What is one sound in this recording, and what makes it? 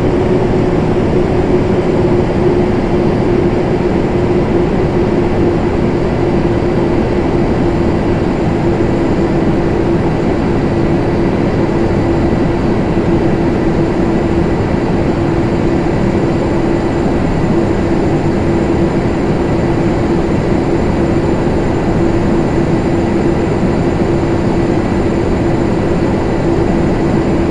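Jet engines roar with a steady, droning hum.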